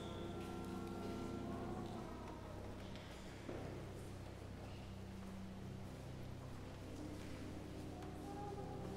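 A choir sings slow sustained notes in a large echoing hall.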